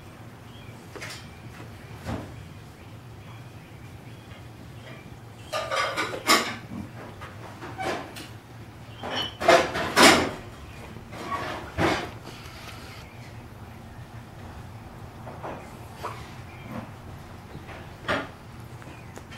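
A plastic cone scrapes and rustles against a rug in short bursts.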